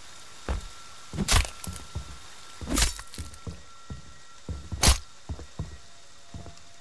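Heavy footsteps thud slowly across a wooden floor.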